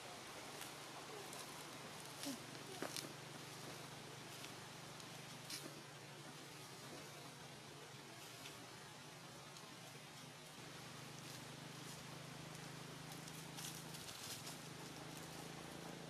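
Dry leaves rustle and crackle as small monkeys scramble about.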